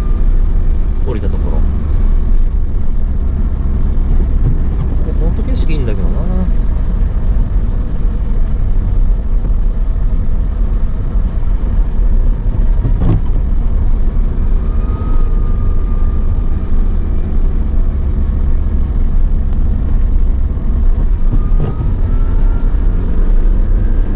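Tyres crunch over snow.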